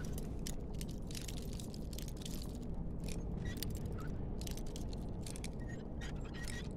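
A lock pick scrapes and clicks inside a lock.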